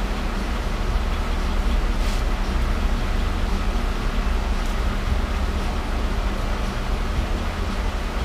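Metal parts clink softly as a hand handles a cylinder head.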